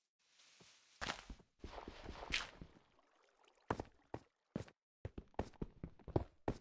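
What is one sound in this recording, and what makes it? A pickaxe chips rapidly at stone.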